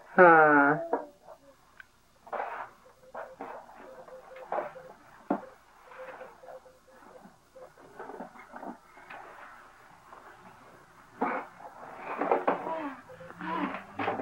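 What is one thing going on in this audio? Small cardboard boxes knock and tumble against each other.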